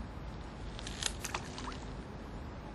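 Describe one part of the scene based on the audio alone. Water splashes briefly close by.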